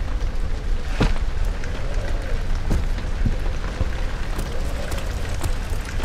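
Footsteps thud slowly on a stone floor.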